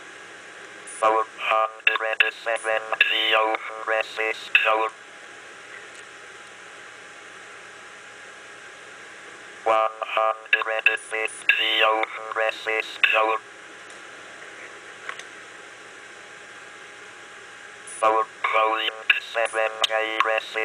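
A synthesized computer voice reads out values through a small speaker, in bursts with pauses between.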